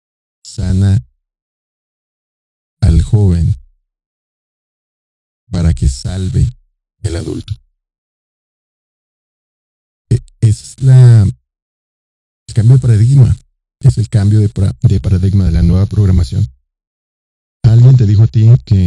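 A middle-aged man speaks slowly and deliberately into a close microphone, with long pauses.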